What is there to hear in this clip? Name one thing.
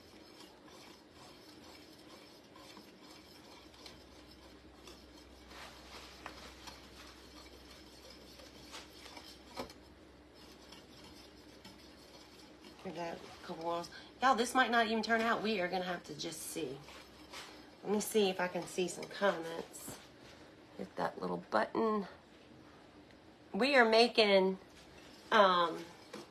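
A whisk scrapes and stirs in a metal pot.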